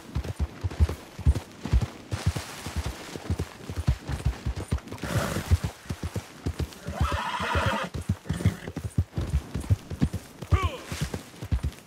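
Horse hooves thud steadily on soft ground.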